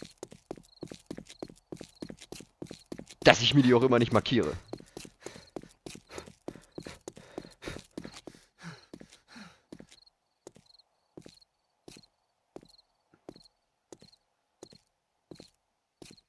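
Footsteps crunch steadily on a gravel road.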